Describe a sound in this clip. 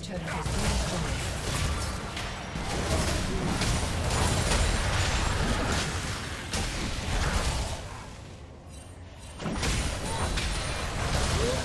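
Game spell effects and weapon hits crackle and clash in a fierce fight.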